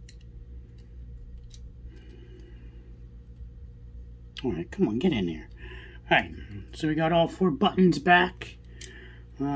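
Small objects click softly in a man's hands.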